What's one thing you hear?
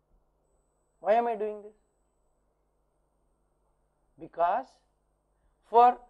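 A man speaks calmly in short phrases with pauses, close by.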